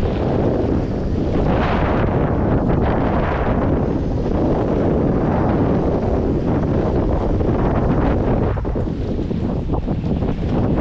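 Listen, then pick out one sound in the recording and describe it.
Strong wind buffets the microphone, roaring steadily outdoors.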